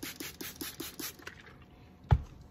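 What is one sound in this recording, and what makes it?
A spray bottle squirts in quick bursts.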